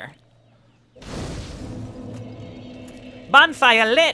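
A fire flares up with a soft whoosh.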